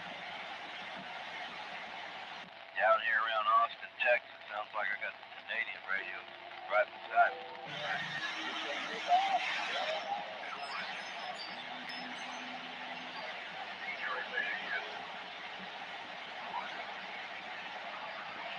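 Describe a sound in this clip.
Static hisses steadily from a radio loudspeaker.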